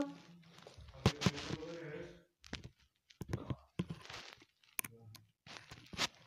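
A phone is handled and rubbed, with bumps and scrapes close up.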